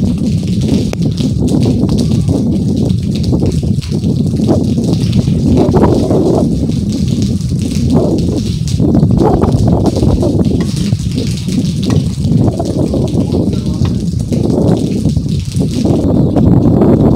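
Wind gusts roar outdoors.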